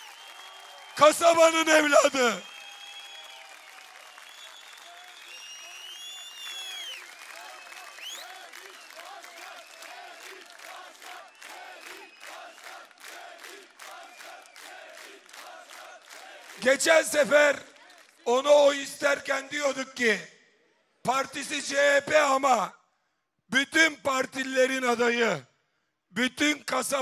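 A man speaks loudly and forcefully through a loudspeaker, with echo outdoors.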